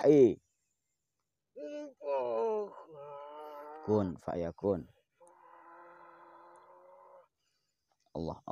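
A man speaks with animation nearby.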